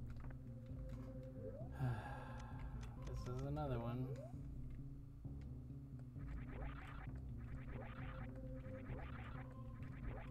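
Electronic video game music plays steadily.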